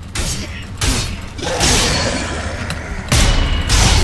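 Metal blades clash and strike in a fight, with echoing hits.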